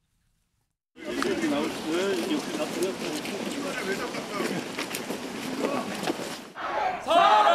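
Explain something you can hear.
Several men talk among themselves outdoors.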